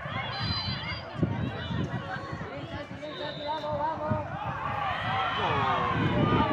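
Young boys shout and call out across an open field.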